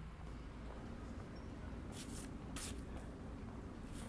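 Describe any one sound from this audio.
Paper crinkles softly between a person's hands.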